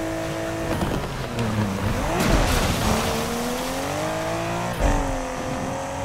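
Tyres screech as a car slides around a corner.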